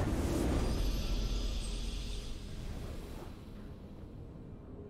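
A game fanfare swells as a round is won.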